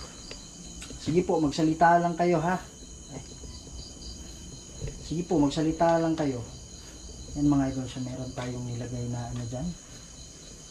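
A man speaks slowly and quietly, close by.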